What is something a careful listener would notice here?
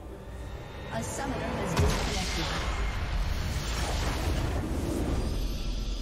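Game spell effects crackle and boom as a base explodes.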